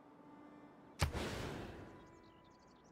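A whooshing game sound effect plays.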